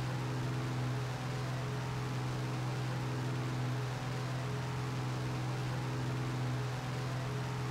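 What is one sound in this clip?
A propeller plane's engine drones steadily and loudly.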